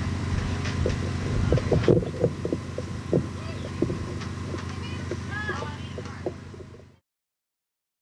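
A band plays loosely on an outdoor stage.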